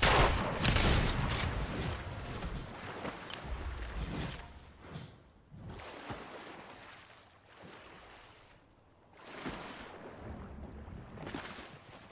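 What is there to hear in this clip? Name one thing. Water splashes as a figure swims.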